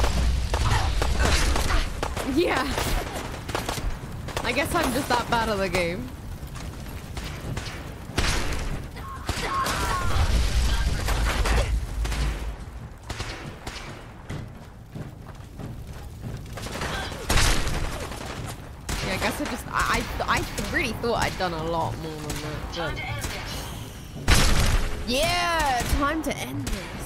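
Gunfire and explosions boom in a video game.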